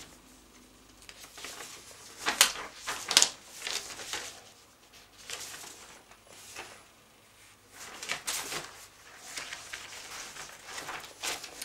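A middle-aged man reads aloud calmly, close by.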